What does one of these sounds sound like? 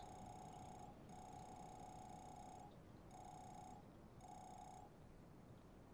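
A game beeps in short, quick bursts.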